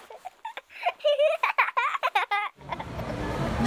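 A baby laughs and squeals loudly.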